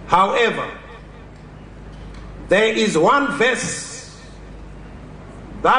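A man speaks slowly and formally into a microphone over a loudspeaker.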